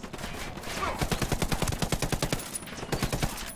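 A rifle fires in rapid bursts of gunshots.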